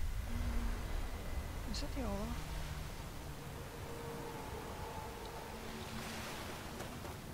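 Water laps and splashes steadily.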